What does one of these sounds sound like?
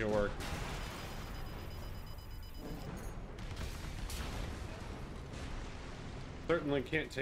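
Explosions and gunfire boom from a video game.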